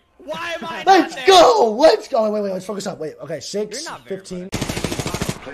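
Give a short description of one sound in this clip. A man talks excitedly into a close microphone.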